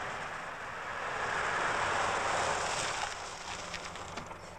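A car's tyres hiss on a wet road as it pulls up.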